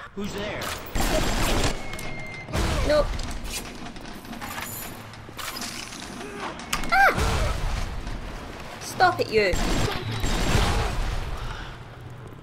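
Gunfire bursts rattle loudly.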